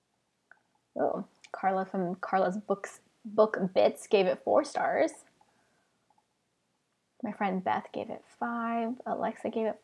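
A young woman reads aloud calmly into a close microphone.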